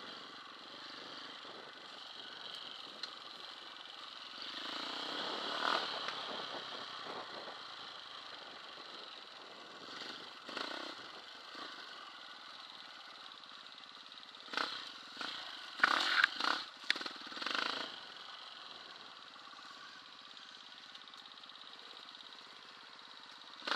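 A dirt bike engine hums and revs close by.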